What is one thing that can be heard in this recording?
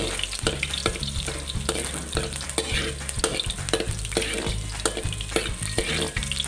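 A metal spoon scrapes and taps against a metal pan.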